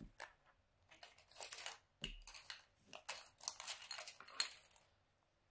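Marker pens tap and rattle on a table.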